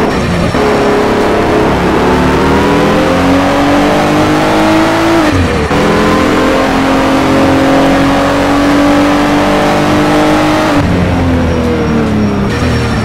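A car engine roars and revs steadily higher, dropping in pitch with each gear change.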